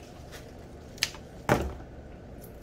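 Scissors clack as they are set down on a wooden table.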